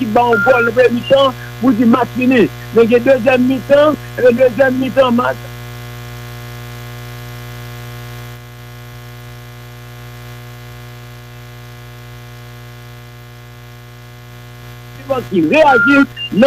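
A man speaks calmly and clearly into a microphone.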